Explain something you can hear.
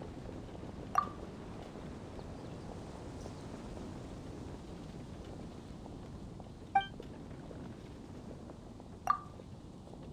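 A short bright chime sounds as a menu choice is picked.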